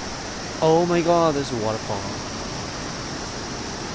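A waterfall rushes steadily in the distance.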